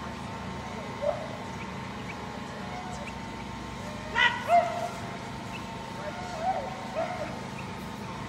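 A woman calls out short, sharp commands outdoors.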